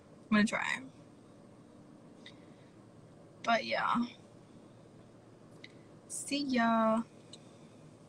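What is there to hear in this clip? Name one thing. A young woman speaks casually into a phone microphone, close by.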